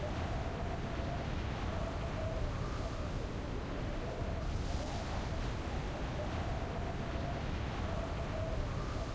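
Wind rushes loudly and steadily past a falling skydiver.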